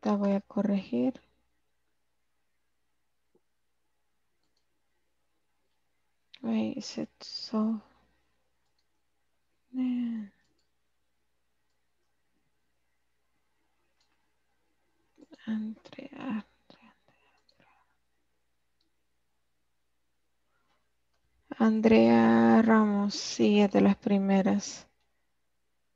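A woman speaks with animation over an online call, in short bursts.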